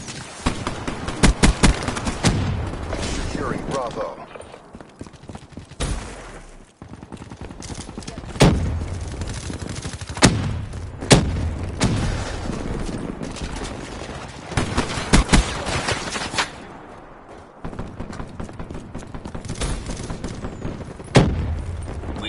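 Rifle shots fire in short bursts.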